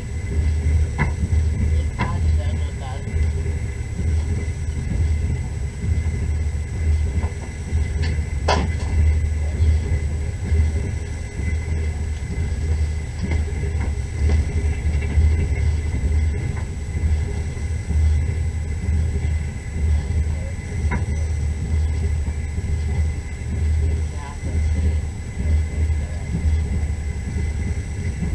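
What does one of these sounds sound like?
A vehicle engine rumbles low and steady while driving.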